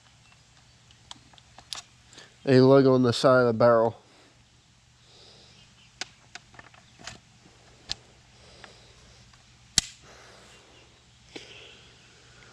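Metal parts of a rifle click and clack as they are handled.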